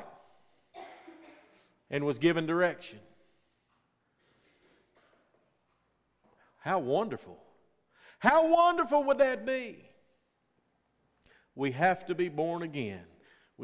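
A middle-aged man preaches through a microphone with animated pauses in a reverberant hall.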